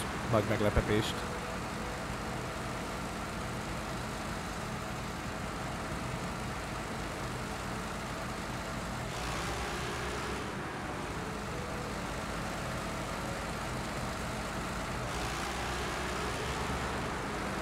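A heavy truck engine rumbles steadily while driving over rough ground.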